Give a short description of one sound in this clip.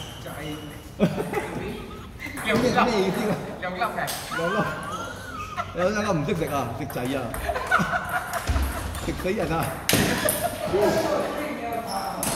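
A table tennis ball clicks off paddles and bounces on a table.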